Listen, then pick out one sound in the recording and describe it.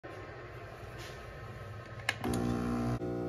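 A coffee maker hums and gurgles as it brews.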